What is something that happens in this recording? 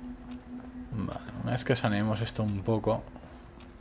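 A man talks into a close microphone in a relaxed way.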